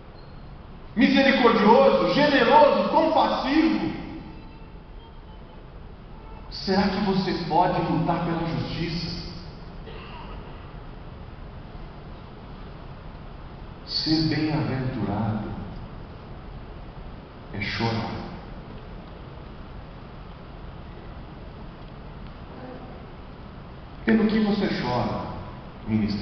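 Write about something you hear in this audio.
A man preaches with passion through a microphone and loudspeakers, in bursts with pauses, in a large echoing hall.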